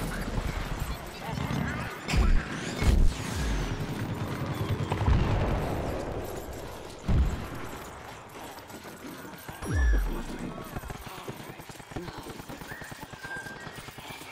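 Quick footsteps patter over wooden boards and ground.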